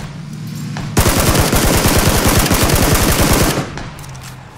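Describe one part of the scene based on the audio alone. A gun fires a rapid, loud burst of shots.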